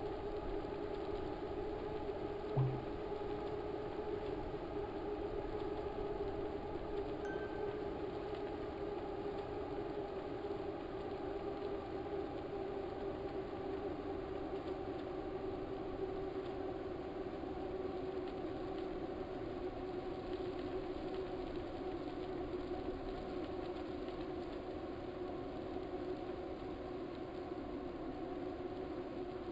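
An indoor bike trainer whirs steadily as a man pedals hard.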